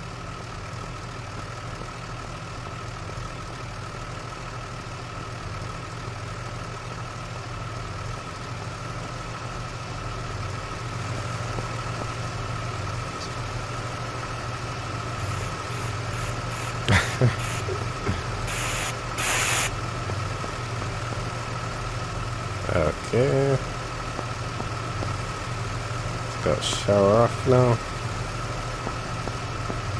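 Fire truck engines idle with a low, steady hum.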